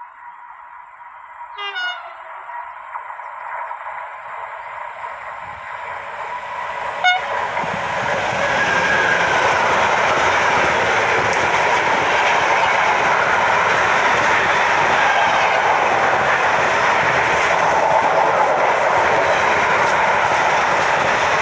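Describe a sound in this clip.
A long freight train approaches and then rumbles and clatters past close by, growing steadily louder.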